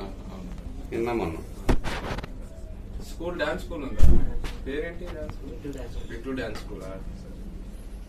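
A young man talks and laughs close by, with animation.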